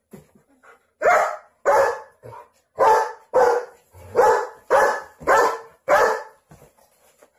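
A large dog barks loudly and repeatedly, close by.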